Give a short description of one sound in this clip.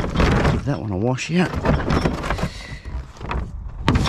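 A plastic bin lid creaks open and thuds back.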